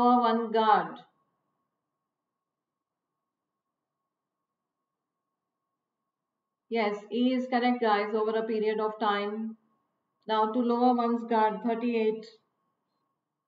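A woman speaks calmly and clearly into a close microphone, pausing between phrases.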